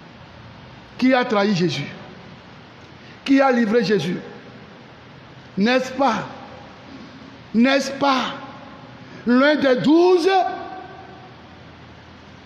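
A man sings short chanted phrases into a microphone, with pauses between them.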